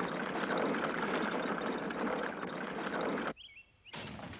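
A horse-drawn carriage rattles along loudly.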